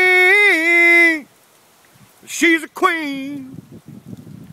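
An elderly man sings out loudly in long held notes close to the microphone.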